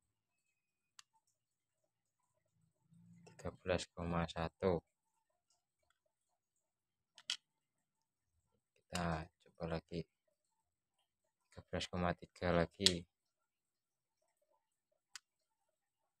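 A small lead pellet clicks onto a metal scale pan.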